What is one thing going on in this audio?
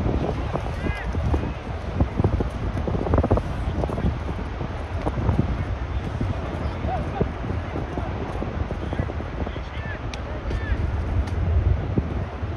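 Wind rumbles across an open outdoor field.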